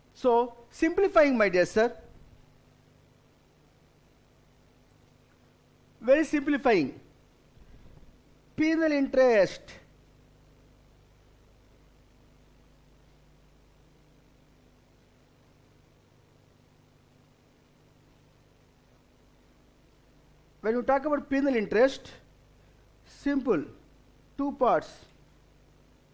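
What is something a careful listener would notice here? A middle-aged man speaks calmly into a microphone, in short bursts with long pauses.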